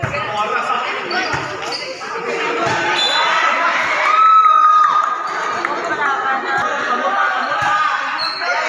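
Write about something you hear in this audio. A crowd of young people chatters and shouts in a large echoing hall.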